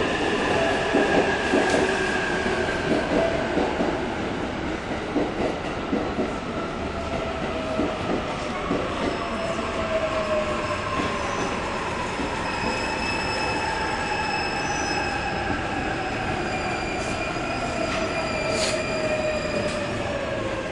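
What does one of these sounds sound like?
A train's electric motor whines, slowly falling in pitch as the train slows down.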